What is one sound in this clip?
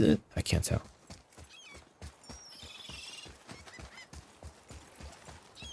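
Heavy footsteps run quickly on stone.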